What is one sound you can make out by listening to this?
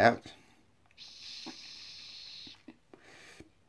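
A man breathes out a long, soft puff of vapour.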